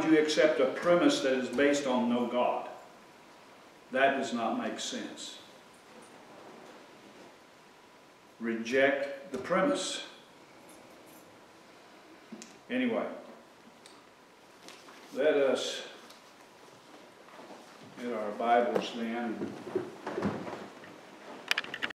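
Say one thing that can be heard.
An elderly man speaks calmly in pauses, a little way off in a room.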